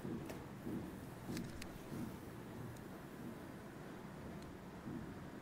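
Scissors snip through hair with short, crisp clicks.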